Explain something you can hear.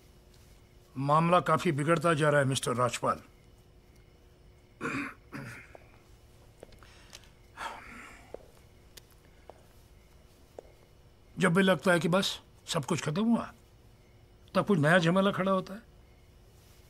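An elderly man speaks slowly and gravely, close by.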